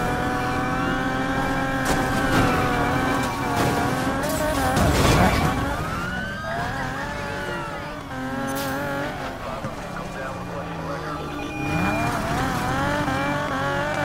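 A police siren wails.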